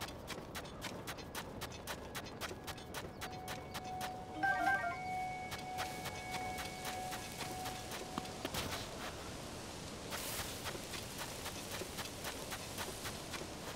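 Footsteps pad quickly across soft sand.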